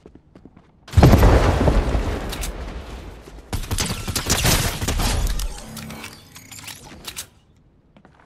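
Rapid gunshots fire in loud bursts.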